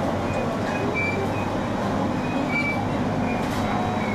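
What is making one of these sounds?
A passing freight train roars by close alongside.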